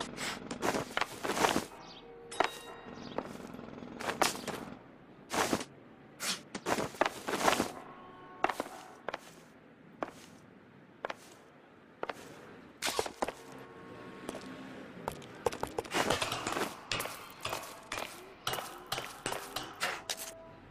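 Footsteps thud and scrape on wood and stone.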